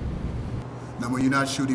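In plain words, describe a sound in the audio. A teenage boy speaks calmly into a microphone.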